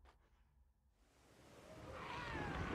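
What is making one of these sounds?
Outdoor ambience with wind fades in.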